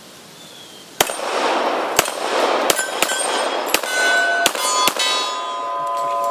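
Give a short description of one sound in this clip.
A pistol fires several sharp shots outdoors, with echoes.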